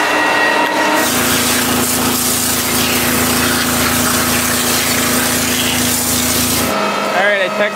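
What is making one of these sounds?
Water gushes into a metal tank.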